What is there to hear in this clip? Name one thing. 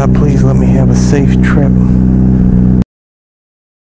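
A motorcycle engine idles with a deep, steady hum.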